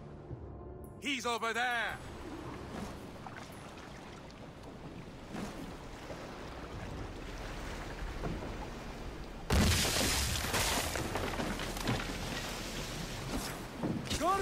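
Waves slosh against a boat.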